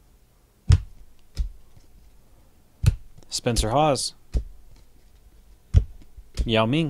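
Hands shuffle and flick through stiff trading cards with sharp snapping clicks.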